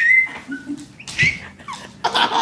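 A baby laughs and squeals close by.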